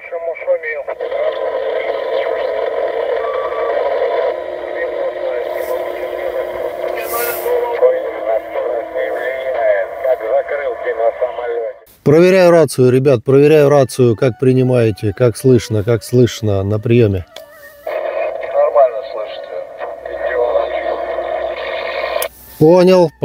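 A man's voice comes through a radio loudspeaker with a thin, crackly sound.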